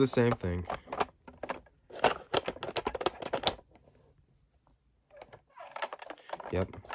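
Plastic toy trucks clack and rattle as they are handled.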